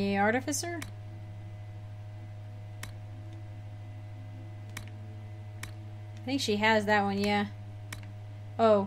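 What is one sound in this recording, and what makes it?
Short interface clicks sound as menu options change.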